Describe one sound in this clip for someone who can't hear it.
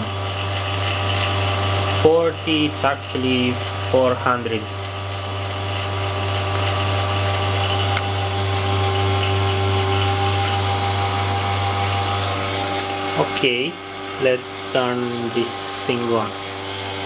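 Electrical equipment hums steadily and low.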